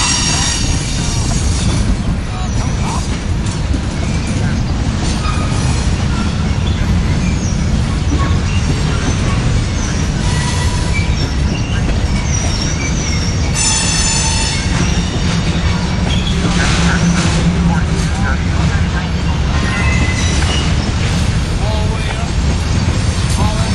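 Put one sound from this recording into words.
A freight train rumbles steadily past up close.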